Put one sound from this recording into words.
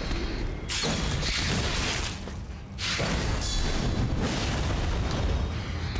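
Weapons clang and thud in a close fight.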